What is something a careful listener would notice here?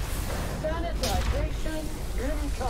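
An explosion bursts with a deep boom.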